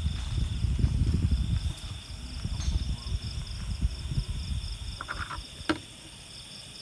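Wind rumbles outdoors, then eases.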